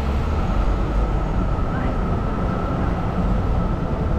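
A tram rolls past nearby.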